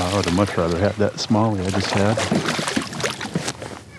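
Water splashes as a fish is lifted in a net.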